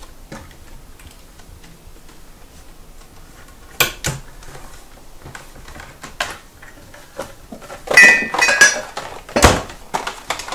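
Cupboard doors knock open and shut.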